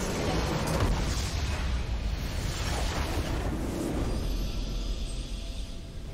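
A triumphant fanfare swells as the match ends.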